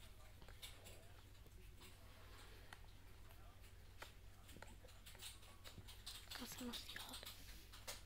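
Newborn puppies suckle with soft wet smacking sounds.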